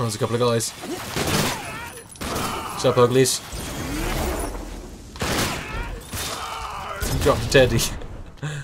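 Explosions boom and crackle in bursts.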